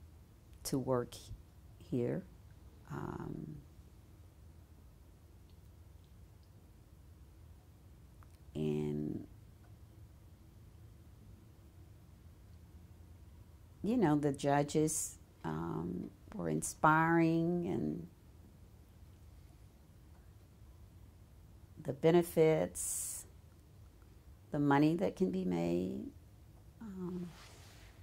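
An older woman speaks calmly and slowly into a close microphone, with long pauses.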